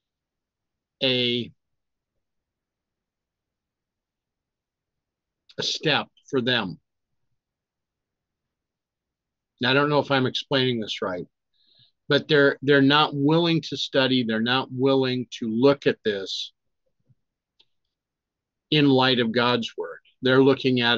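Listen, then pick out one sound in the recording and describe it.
An elderly man speaks calmly and closely into a microphone, with pauses.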